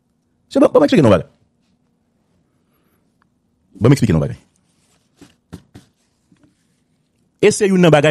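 A man speaks over a phone line in short bursts, with pauses.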